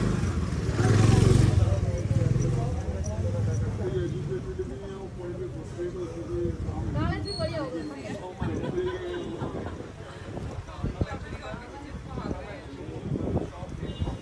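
Men and women talk nearby.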